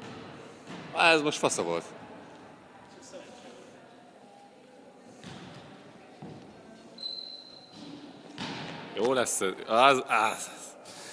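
Young men shout and cheer in a large echoing hall.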